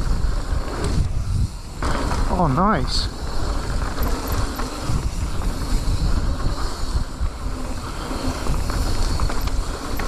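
Wind rushes and rumbles loudly past a close microphone.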